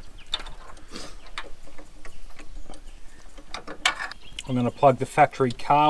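Metal tools click and clink against engine parts.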